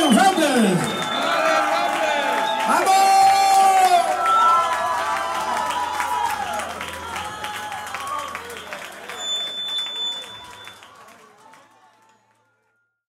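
A live rock and roll band plays, then fades out.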